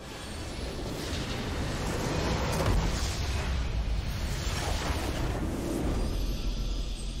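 A loud game explosion booms and rumbles.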